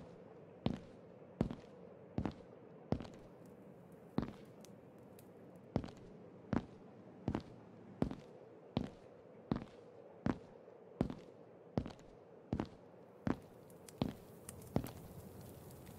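Footsteps fall slowly and evenly on a stone floor, with a short echo.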